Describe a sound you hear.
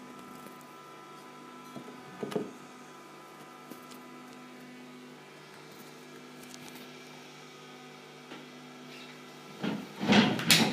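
Quiet electronic tones drone and hum steadily.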